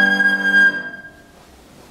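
A flute plays a high melody that ends on a held note.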